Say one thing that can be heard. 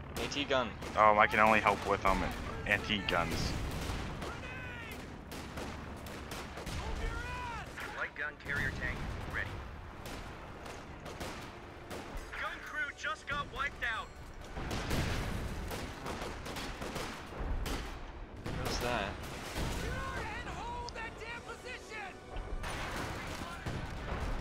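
Rifles fire in short bursts.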